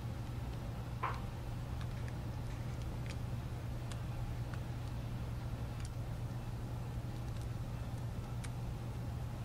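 Small plastic and metal parts click softly as fingers handle them.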